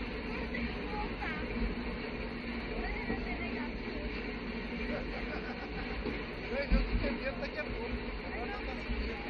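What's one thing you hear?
A roller coaster car clatters steadily up a lift hill outdoors.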